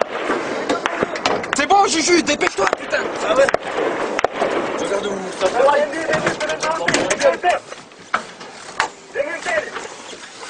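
Gunfire cracks in bursts.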